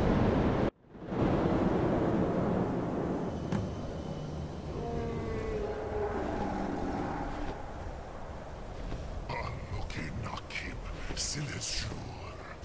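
Wind blows steadily across an open mountainside.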